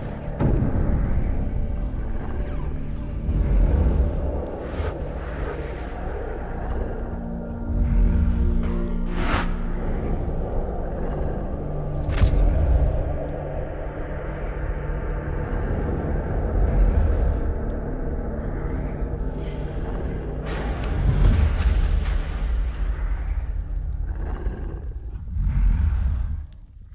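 A fire roars steadily.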